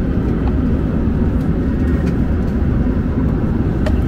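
A seatback tray table clicks open.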